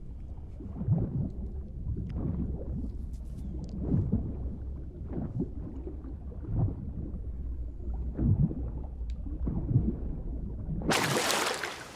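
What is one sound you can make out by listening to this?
Water rumbles and gurgles, heard muffled from under the surface.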